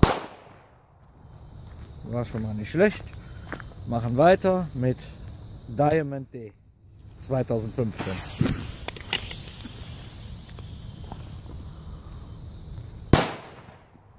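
A firecracker bangs loudly outdoors.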